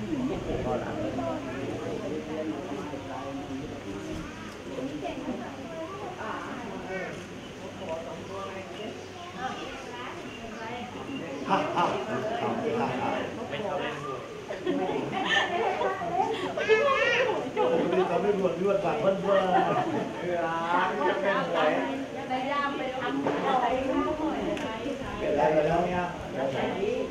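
A group of women and men chat together nearby, outdoors.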